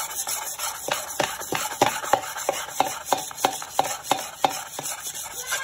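A sponge scrubs a blade against a metal bowl with rhythmic scraping strokes.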